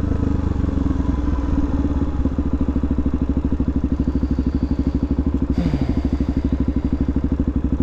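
A motorcycle engine idles close by with a rapid, steady thumping putter.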